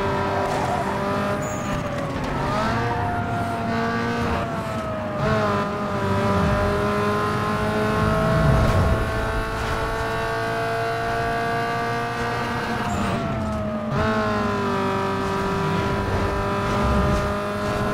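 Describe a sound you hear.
A car engine roars at high revs, its pitch climbing and dropping sharply with each gear change.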